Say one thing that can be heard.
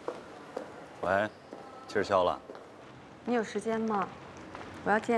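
A young man talks calmly on a phone, close by.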